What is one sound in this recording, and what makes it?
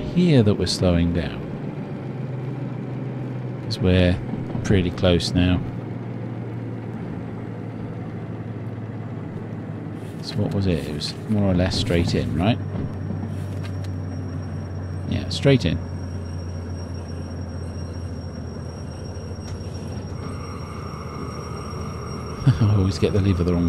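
A diesel locomotive engine drones, heard from inside the cab.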